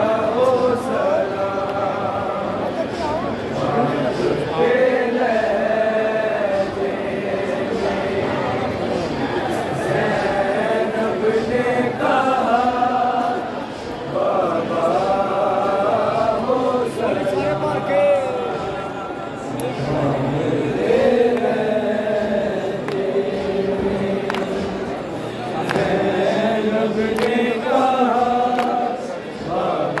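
A man sings a mournful chant loudly through a loudspeaker.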